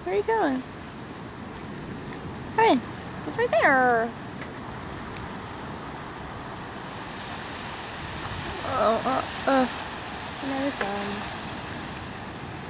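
Choppy water laps and splashes steadily.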